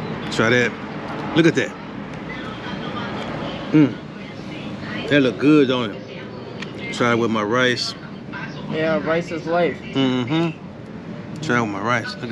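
A plastic fork scrapes a foam food tray.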